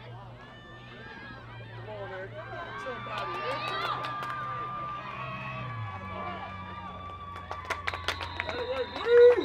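A crowd on the sideline cheers and yells, growing louder.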